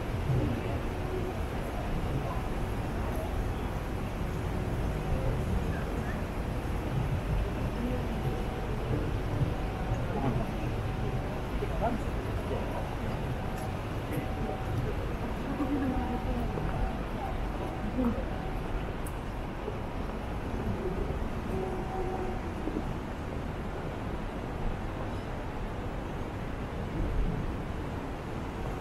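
Men and women chatter quietly in the distance outdoors.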